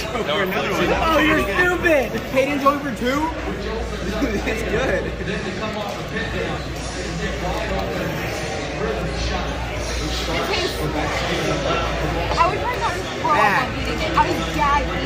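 A crowd murmurs in the background of a busy, noisy room.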